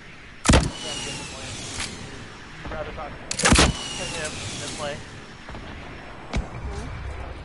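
Gunshots crack loudly in a game.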